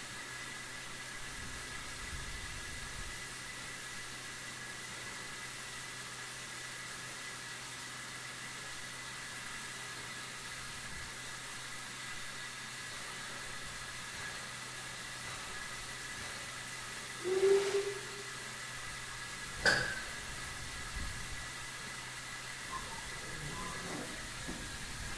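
A steam locomotive hisses steadily as it stands idling.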